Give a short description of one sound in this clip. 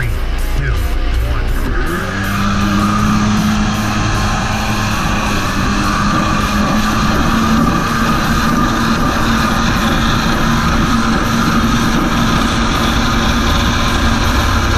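Wind buffets loudly.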